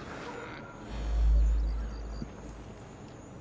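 A heavy thud sounds as someone lands on a wooden beam.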